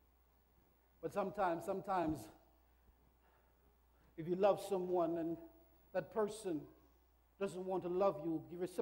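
A man preaches forcefully through a microphone in an echoing hall, in bursts with pauses.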